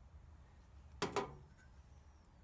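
A small metal tin is set down on a hard surface with a knock.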